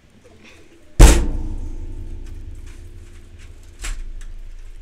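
A gunshot booms loudly once and rings out.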